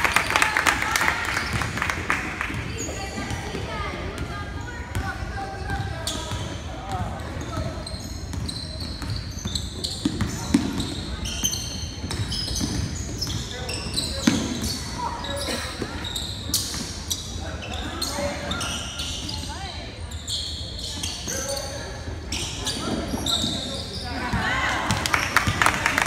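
A basketball bounces on a wooden floor, echoing in a large hall.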